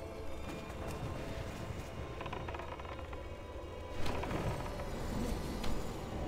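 Spell effects crackle and clash in a game battle.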